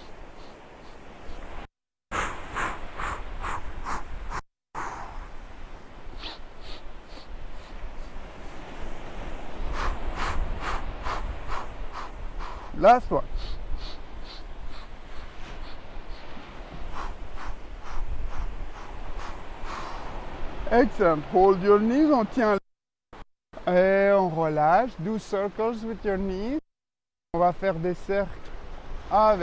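Waves wash onto a shore outdoors.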